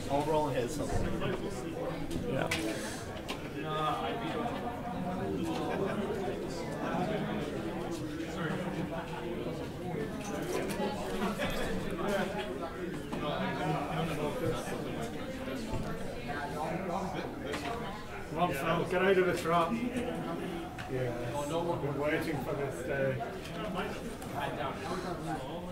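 Men talk with each other nearby.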